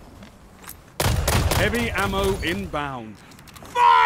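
Rapid gunshots fire close by in quick bursts.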